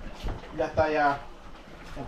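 A wooden spoon stirs food in a pot.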